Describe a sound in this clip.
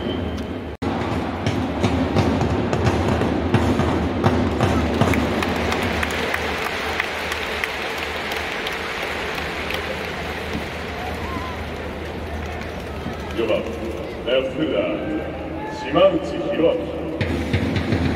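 A large crowd murmurs and cheers in a big echoing stadium.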